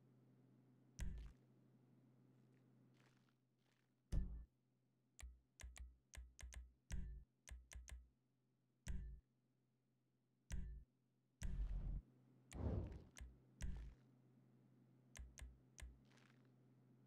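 Short electronic menu clicks and blips sound again and again.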